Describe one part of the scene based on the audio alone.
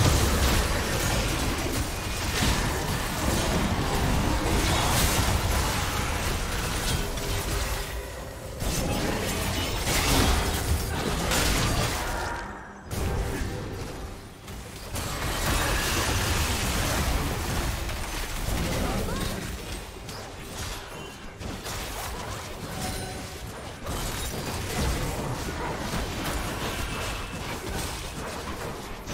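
Magic blasts and spell effects crackle and burst in a video game battle.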